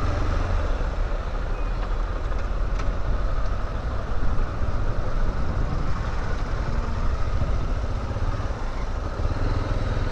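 A motorcycle engine idles and rumbles up close.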